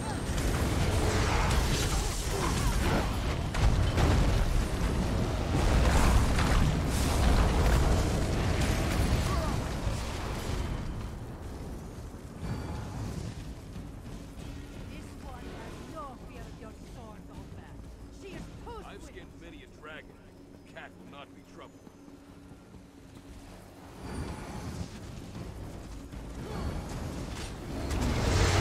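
Spells blast and roar in a fierce fight.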